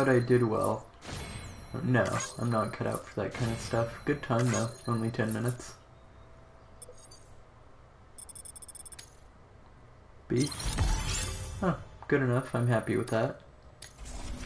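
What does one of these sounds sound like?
Electronic menu sounds chime and tick as a score counts up.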